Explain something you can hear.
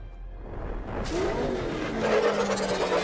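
A car engine roars loudly as it revs.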